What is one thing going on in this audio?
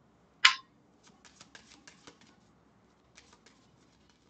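Playing cards are shuffled by hand with soft flicks and taps.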